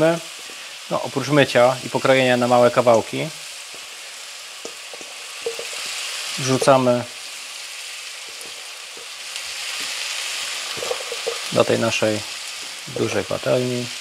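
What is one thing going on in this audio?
Pieces of broccoli drop softly into a sizzling pan.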